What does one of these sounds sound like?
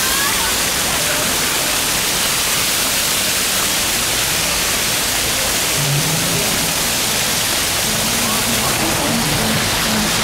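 Fountain jets splash and gush onto pavement nearby.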